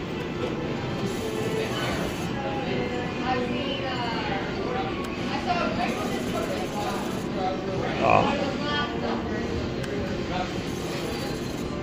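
Slot machine reels spin and whir, then stop with a clunk.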